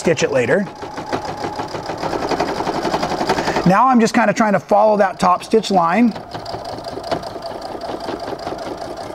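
A sewing machine runs with a fast, steady whirring stitch.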